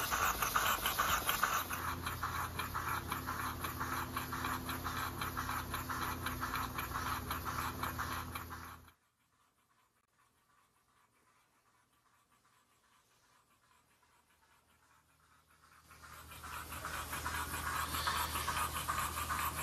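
A small steam engine chugs rapidly and steadily close by.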